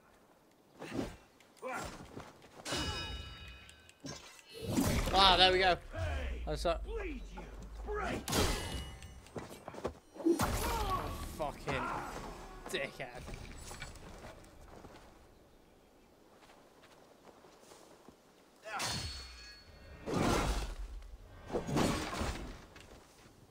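Blades clash and thud in a fight.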